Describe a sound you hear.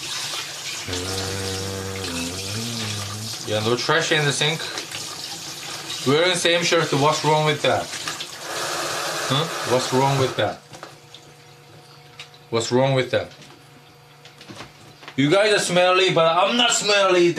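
A man speaks and sings animatedly close by.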